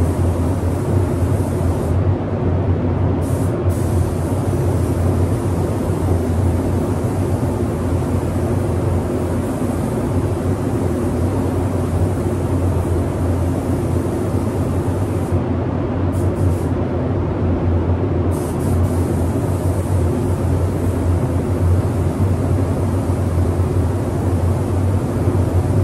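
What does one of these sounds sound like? A paint spray gun hisses in bursts.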